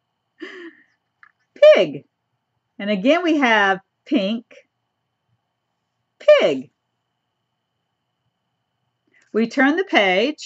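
An elderly woman reads aloud in a lively, expressive voice close to a microphone.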